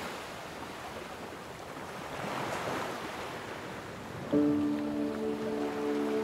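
Small waves wash in and out over a pebble shore in slow swells.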